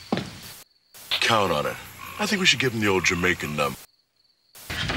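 A man talks into a phone.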